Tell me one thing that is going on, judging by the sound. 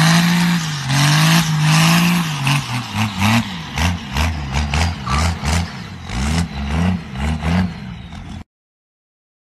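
A diesel truck engine revs hard and roars.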